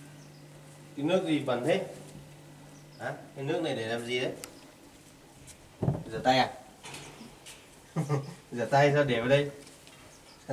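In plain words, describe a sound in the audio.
A man talks calmly nearby, in short bursts.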